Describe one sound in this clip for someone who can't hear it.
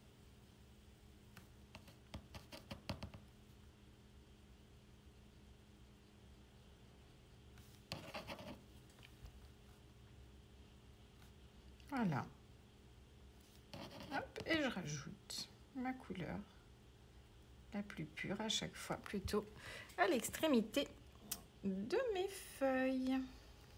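A paintbrush scrubs and dabs softly.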